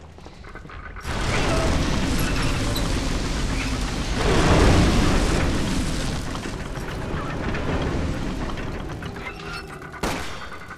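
A heavy mechanism grinds and rumbles as a crank is turned.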